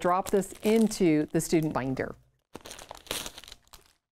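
Paper pages rustle as a booklet is handled.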